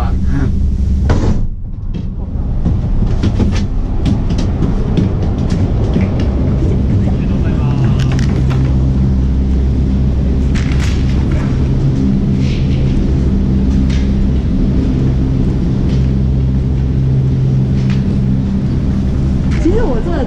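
Heavy lift machinery rumbles and hums steadily close by.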